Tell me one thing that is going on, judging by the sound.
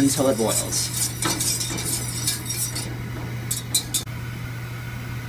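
Liquid crackles and bubbles in a small metal pot.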